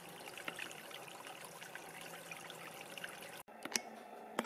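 Water trickles gently over stones in a shallow stream.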